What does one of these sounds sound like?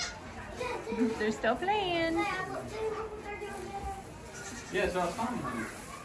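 Young goats bleat loudly and repeatedly close by.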